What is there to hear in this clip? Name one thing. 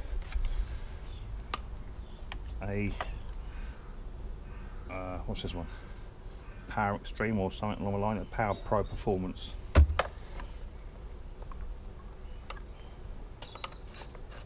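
A plastic garden tool knocks and clicks as it is handled.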